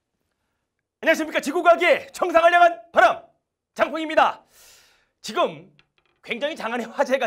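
A middle-aged man speaks with animation into a clip-on microphone.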